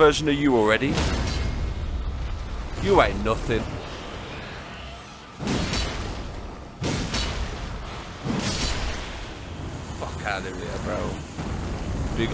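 Heavy blows and crashes of a fight land again and again.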